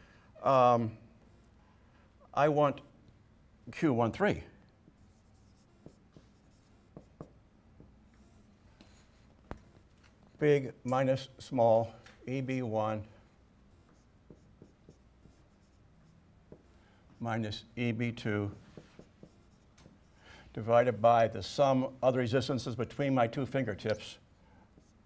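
An elderly man speaks calmly, explaining in pauses.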